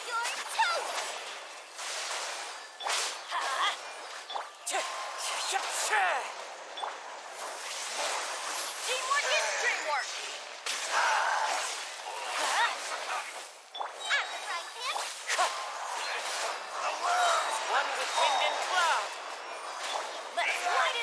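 Magic blasts and sword strikes crash and whoosh in quick bursts.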